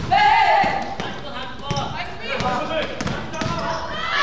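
A basketball bounces on the floor with dull thuds.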